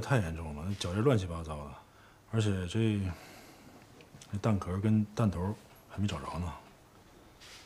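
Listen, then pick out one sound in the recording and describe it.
A middle-aged man speaks in a low, serious voice.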